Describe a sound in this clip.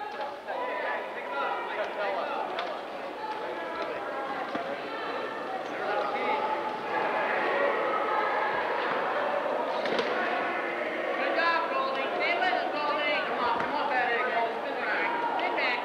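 Wheelchair wheels roll and squeak on a hard floor.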